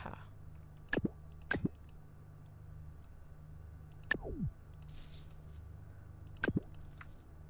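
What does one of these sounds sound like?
Short electronic blips with falling swoops sound as game parts snap into place.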